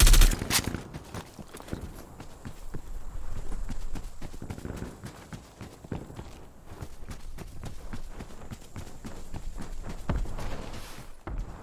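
Footsteps crunch quickly across sand.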